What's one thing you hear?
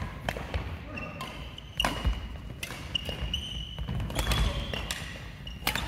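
Sports shoes squeak on a hall floor.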